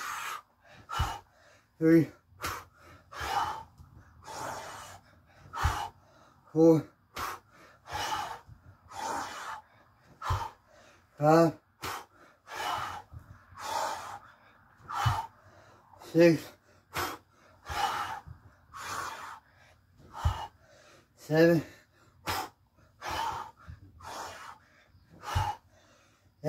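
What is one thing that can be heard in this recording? Feet thud on a carpeted floor during burpees.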